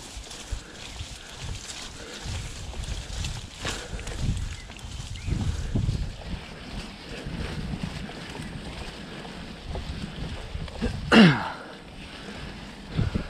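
Bicycle tyres roll and bump over a rough grassy trail.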